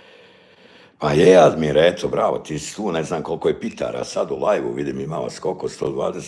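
A middle-aged man talks with animation close to a phone microphone.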